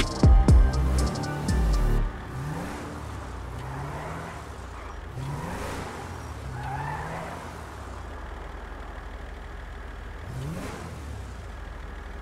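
A car engine revs up repeatedly, rising in pitch.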